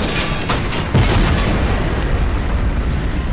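A loud explosion booms and rolls away.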